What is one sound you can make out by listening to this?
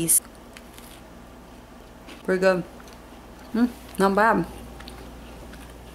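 A young woman chews a crunchy cookie.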